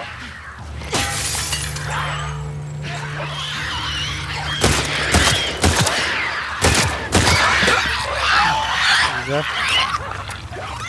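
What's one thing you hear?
A creature shrieks and snarls.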